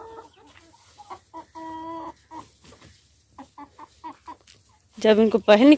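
Chickens cluck nearby.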